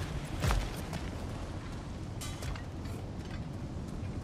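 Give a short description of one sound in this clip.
Heavy footsteps crunch on stony ground.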